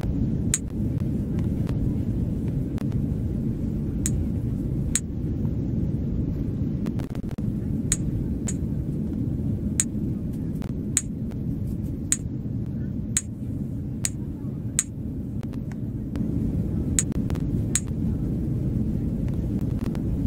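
A low, steady hum of an aircraft cabin runs throughout.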